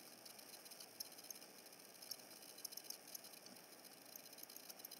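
Air hisses softly through a thin tube.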